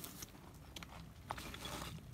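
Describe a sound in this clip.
Footsteps crunch on a rocky trail.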